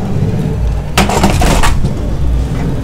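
A power supply knocks into a metal case.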